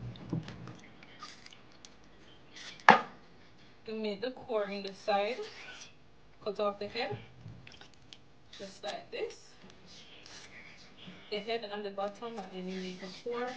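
Water sloshes and splashes gently in a metal bowl.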